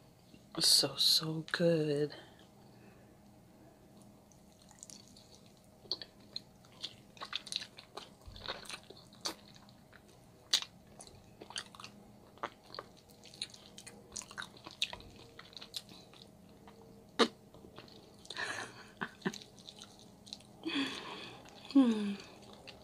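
Sticky meat tears and squelches between fingers.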